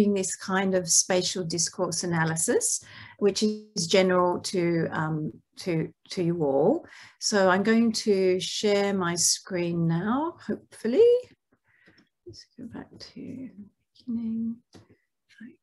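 A middle-aged woman speaks calmly through an online call microphone.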